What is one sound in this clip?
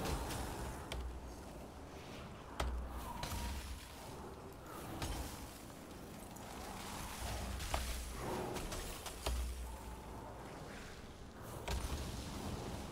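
Magic spells burst and crackle with sharp hits.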